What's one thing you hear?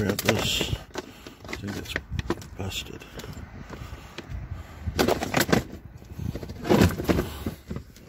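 A hard plastic crate knocks and rattles as it is handled.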